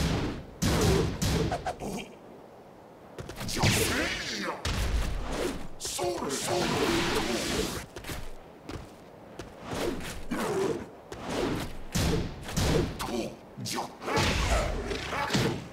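Punches and kicks land with heavy, smacking thuds.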